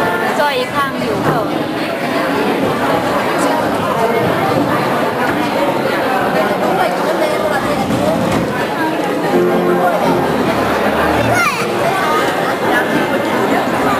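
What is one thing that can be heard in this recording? A crowd of adults and children chatters in a large hall.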